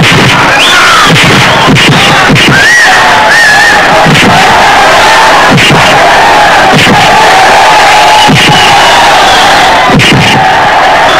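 A large crowd cheers and shouts loudly throughout.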